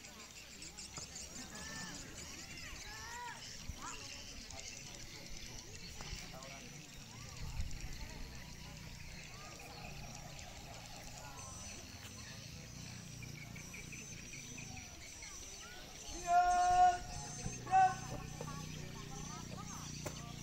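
Young people chatter and call out in the distance outdoors.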